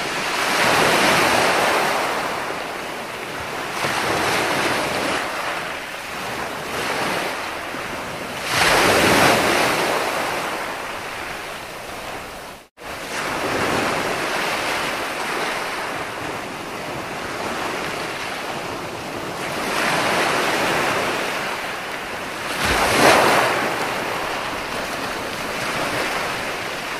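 Waves break and wash up onto a beach, rising and falling in surges.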